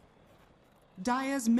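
A young man speaks loudly into a close microphone.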